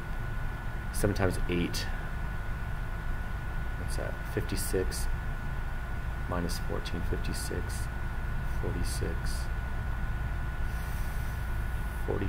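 A middle-aged man talks calmly into a webcam microphone.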